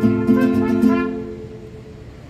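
A mariachi band plays a loud chord with trumpets and strings, then stops.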